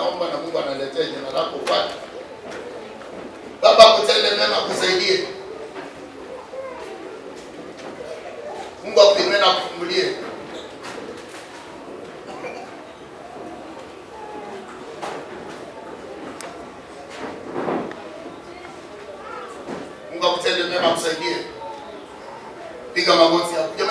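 A man speaks loudly and with animation through a microphone and loudspeakers, in short bursts.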